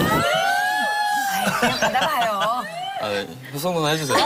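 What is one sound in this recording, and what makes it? Young women laugh softly.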